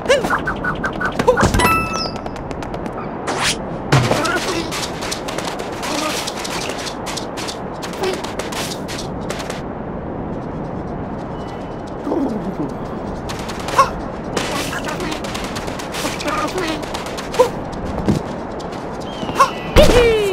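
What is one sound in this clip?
Cheerful video game music plays throughout.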